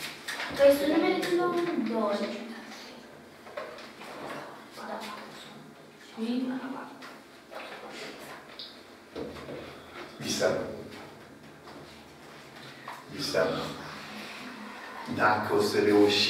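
An elderly man speaks calmly and clearly, as if teaching.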